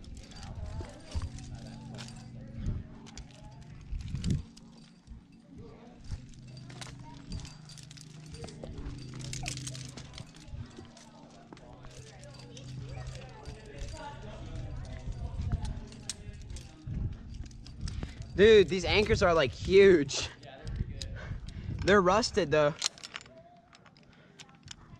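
Metal carabiners clink together on a climbing harness.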